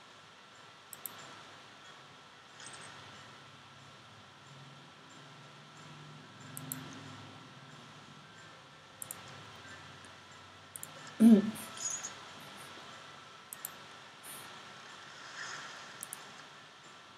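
Short soft clicks sound from a game's controls.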